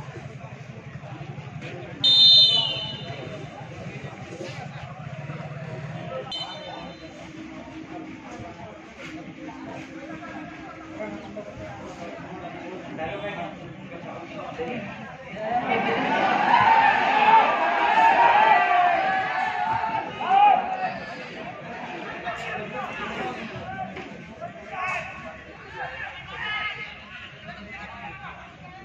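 A crowd of spectators chatters and cheers outdoors, swelling loudly for a while.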